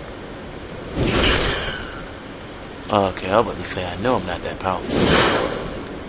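A magic spell whooshes and bursts.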